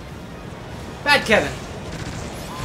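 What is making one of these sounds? Two sharp, loud energy bursts sweep quickly down in pitch.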